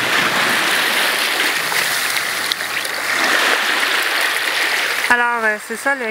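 Water splashes and churns in the shallows.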